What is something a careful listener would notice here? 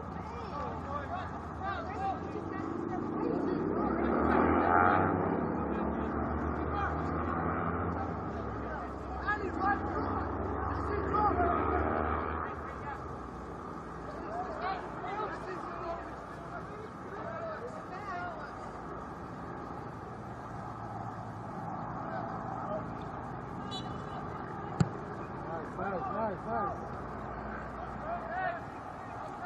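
Distant young players shout to each other across an open outdoor field.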